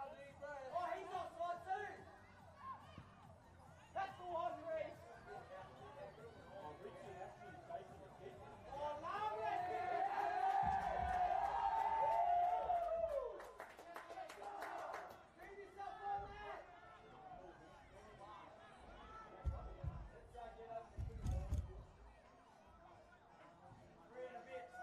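Men on the field shout to each other.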